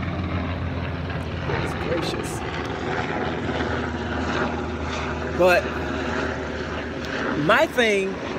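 A man speaks close to the microphone outdoors.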